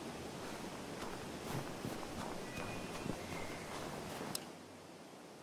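Running footsteps crunch on snow.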